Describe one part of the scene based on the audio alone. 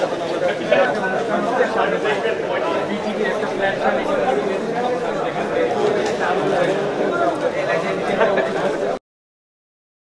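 A crowd of men chatter and murmur all around.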